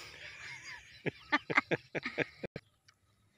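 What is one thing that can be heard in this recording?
A middle-aged woman laughs in short bursts.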